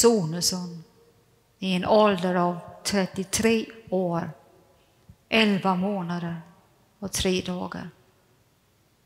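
An elderly man speaks calmly in an echoing hall.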